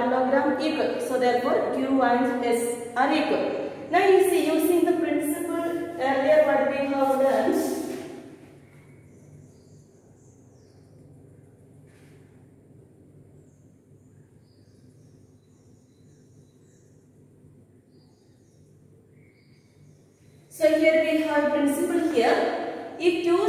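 A woman speaks clearly and with emphasis, as if teaching.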